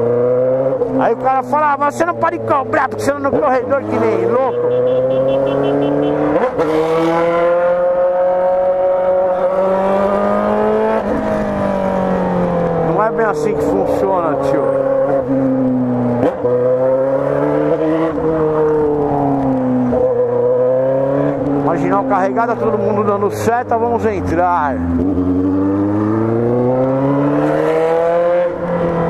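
A motorcycle engine hums up close and rises and falls in pitch as it speeds up and slows down.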